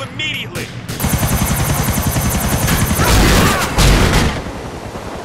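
A helicopter's rotor chops loudly overhead.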